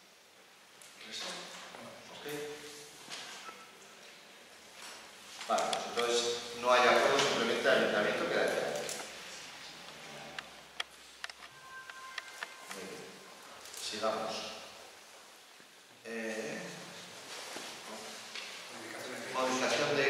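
A man speaks calmly into a microphone in a room with a slight echo.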